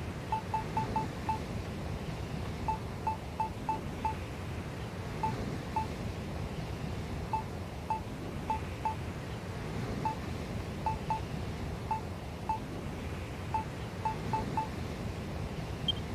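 Short menu blips tick as a selection moves from item to item.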